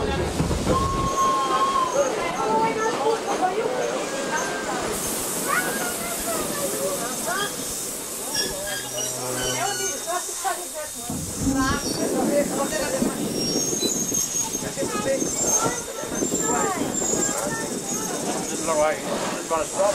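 Several people chatter nearby.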